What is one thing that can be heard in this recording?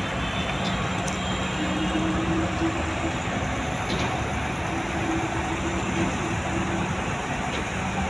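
A crane engine hums steadily.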